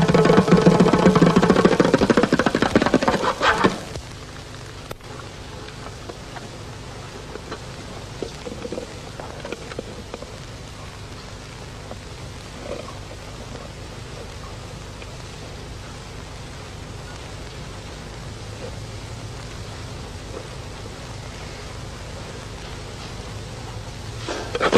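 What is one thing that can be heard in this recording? Fingers tap and stroke the head of a bongo drum.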